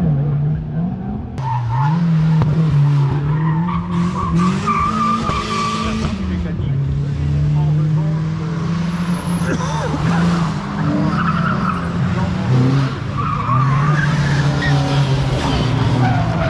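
A car engine drones and revs as the car circles nearby.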